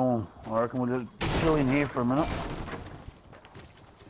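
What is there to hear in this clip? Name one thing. A pickaxe strikes wood with dull knocks.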